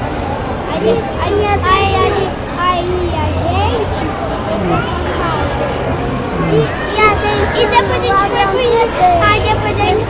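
A small boy talks and laughs close by.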